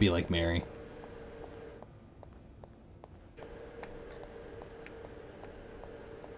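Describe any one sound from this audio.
Footsteps walk at a steady pace on a hard floor.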